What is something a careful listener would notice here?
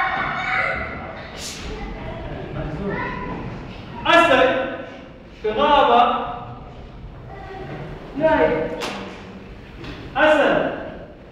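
A young man speaks with animation in an echoing hall.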